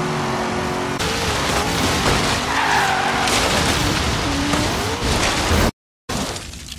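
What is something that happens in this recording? Tyres skid and rumble over rough ground.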